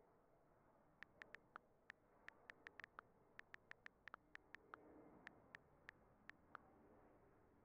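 Keys on a touchscreen keyboard click quickly in short bursts.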